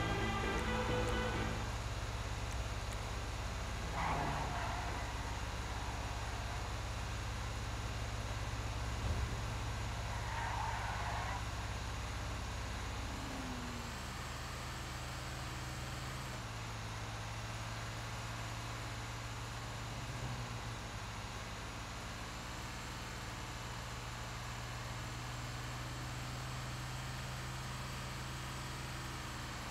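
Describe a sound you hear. A heavy truck engine drones steadily as it drives along a winding road.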